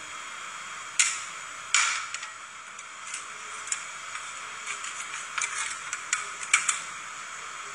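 Metal spatulas scrape and clack on a cold steel plate.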